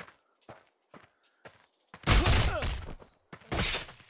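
A heavy blow thuds against a body.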